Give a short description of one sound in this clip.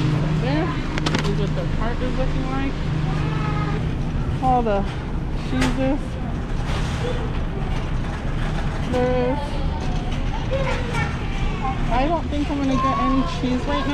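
A shopping cart rattles as it rolls.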